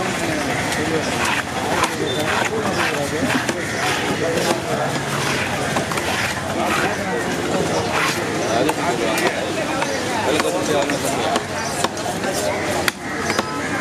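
A cleaver chops through fish on a wooden block with sharp knocks.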